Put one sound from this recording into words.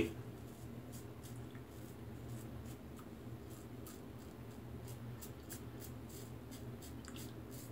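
A razor scrapes softly over stubble.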